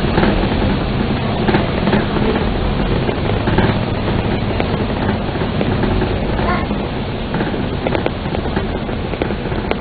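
A bus engine rumbles steadily nearby.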